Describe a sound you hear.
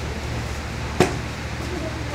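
Meat thumps onto a cutting board.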